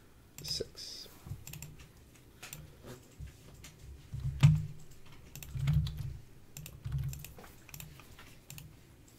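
A young man talks calmly and close to a microphone.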